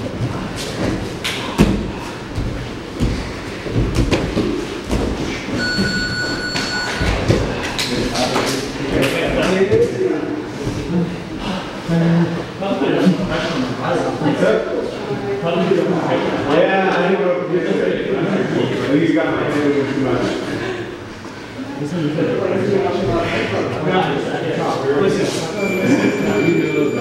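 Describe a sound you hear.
Bodies thump and shuffle on a padded mat.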